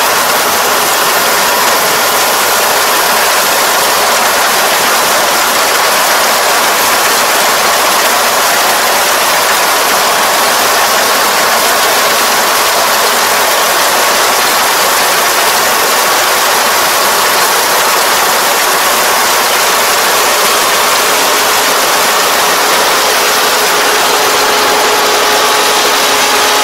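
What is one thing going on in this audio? A combine harvester engine roars steadily close by.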